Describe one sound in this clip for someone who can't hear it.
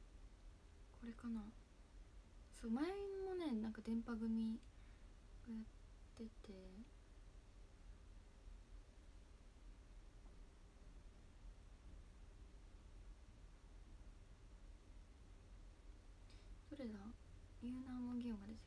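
A young woman speaks softly and briefly, close to a phone microphone.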